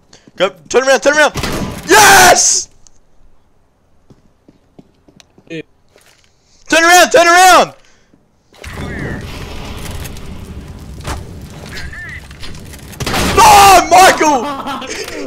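A young man screams and shouts excitedly into a close microphone.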